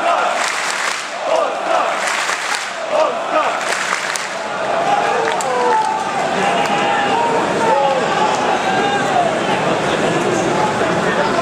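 A large crowd shouts and cheers in a large echoing arena.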